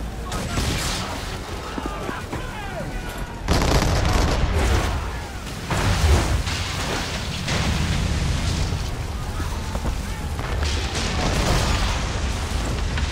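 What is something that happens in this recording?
Cannons boom in heavy volleys.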